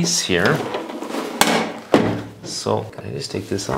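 Plastic parts click and knock as a man handles them.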